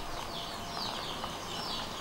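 Water pours from a bowl and splashes.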